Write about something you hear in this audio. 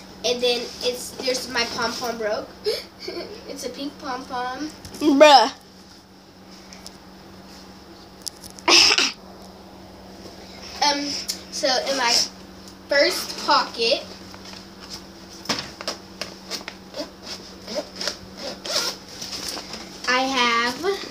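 A young girl talks animatedly close to the microphone.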